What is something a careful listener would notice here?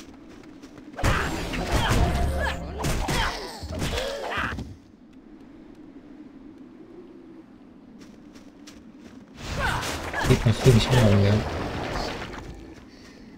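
Magic spells burst and boom in loud blasts.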